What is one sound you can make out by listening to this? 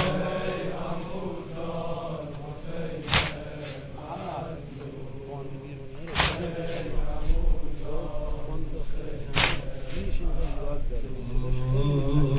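A young man chants a lament through a microphone, with echo.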